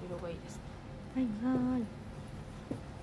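A young woman speaks softly and laughs close by.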